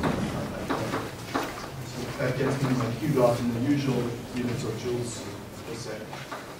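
A man speaks in a large echoing room.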